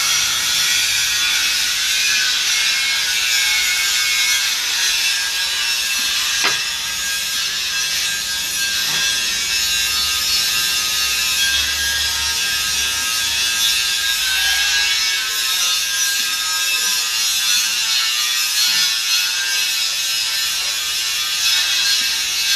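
A metal lathe whirs and hisses steadily as it cuts metal.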